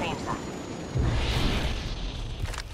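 A heavy thud sounds as a character lands on the ground.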